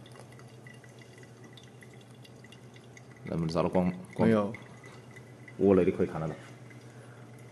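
Water pours from a kettle into a coffee filter.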